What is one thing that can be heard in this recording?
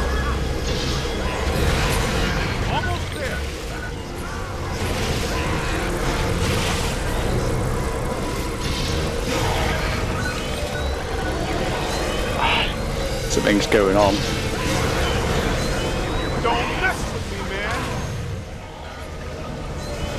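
Energy beams crackle and buzz from a game character's weapon.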